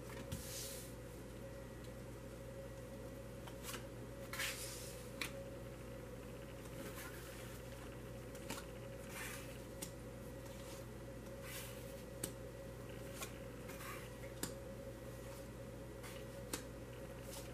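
Cards are slid and laid down on a cloth-covered table with soft brushing taps.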